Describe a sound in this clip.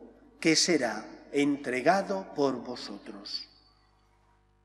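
A man speaks calmly and solemnly into a microphone in a reverberant hall.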